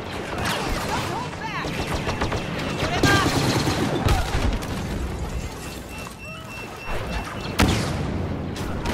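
Blaster shots zap and crackle in quick bursts.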